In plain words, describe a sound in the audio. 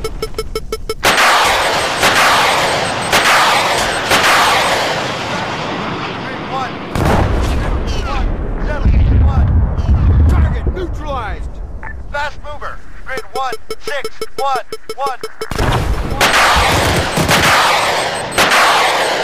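A missile launches with a loud rushing whoosh.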